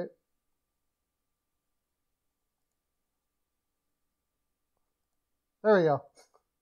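A man speaks calmly into a headset microphone.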